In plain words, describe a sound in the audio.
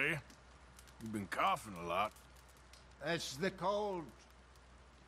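Another man answers calmly, close by.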